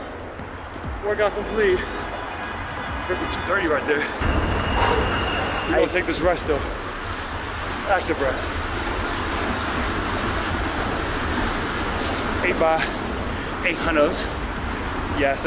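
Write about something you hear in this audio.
A man talks calmly and slightly out of breath, close by.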